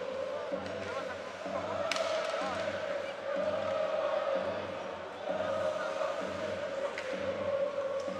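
A large crowd chants and cheers in an echoing arena.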